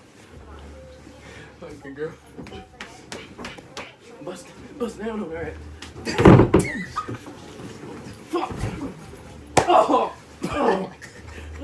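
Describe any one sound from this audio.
Young men laugh loudly.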